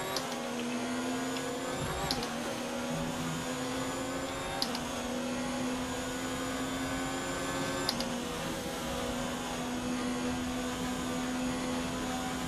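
A racing car engine screams at high revs, climbing in pitch and dropping at each gear change.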